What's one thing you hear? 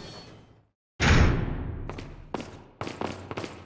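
A heavy door slams shut with a booming echo.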